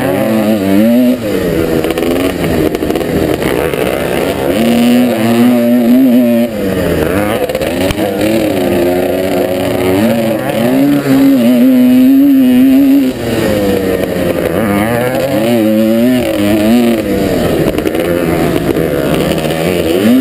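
A motocross bike engine roars close by, revving up and down constantly.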